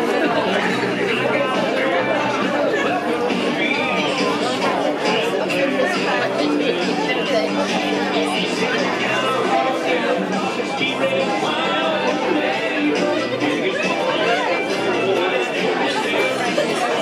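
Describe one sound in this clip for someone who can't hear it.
Women chatter in a large room.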